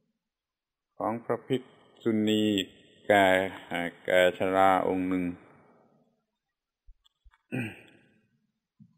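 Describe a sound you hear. An elderly man speaks slowly and calmly.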